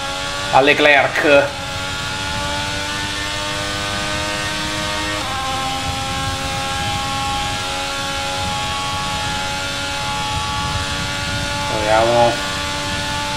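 A young man speaks briefly into a headset microphone.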